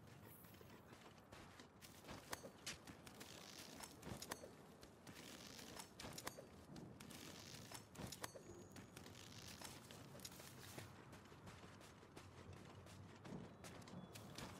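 A character's footsteps crunch and vines rustle as it climbs.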